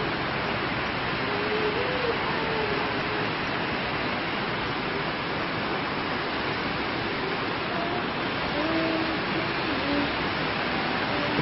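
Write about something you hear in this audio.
Rain drums on a metal roof.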